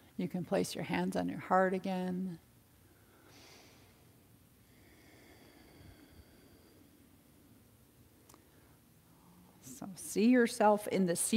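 A woman speaks calmly and close by, giving instructions.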